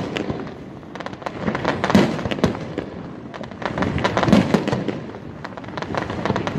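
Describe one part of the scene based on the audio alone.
Fireworks crackle and pop in quick bursts.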